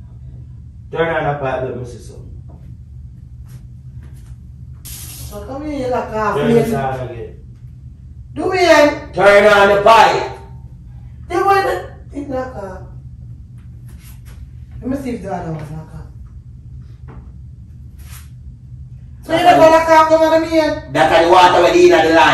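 A young woman talks with animation, a little way off in a room.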